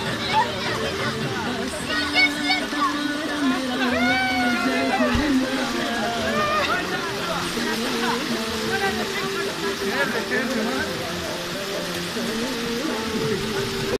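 Children shout and squeal excitedly nearby.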